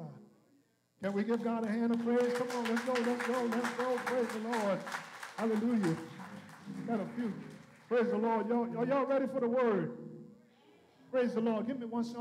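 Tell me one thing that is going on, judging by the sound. Adult men and women sing together in a reverberant hall.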